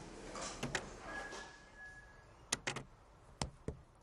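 A door handle clicks as a door opens.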